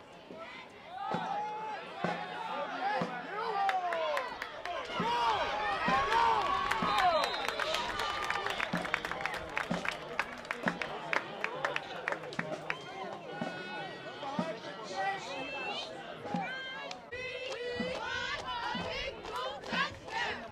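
A crowd of people cheers and shouts outdoors.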